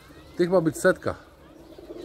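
Pigeons flap their wings.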